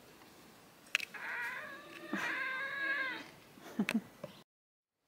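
A cat meows close by.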